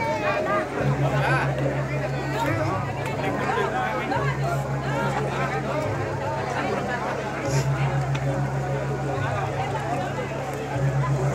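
A large crowd chatters and calls out outdoors, close by.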